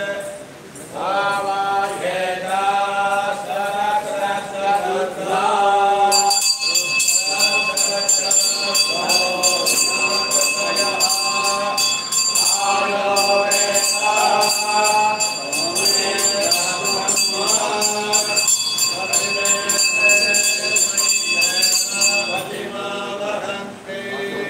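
An elderly man chants in a steady, sung voice.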